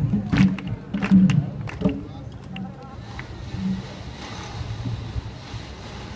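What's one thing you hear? A crowd murmurs in the open air.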